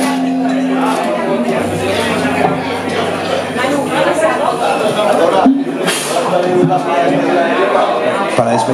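A rock band plays loudly with distorted electric guitars.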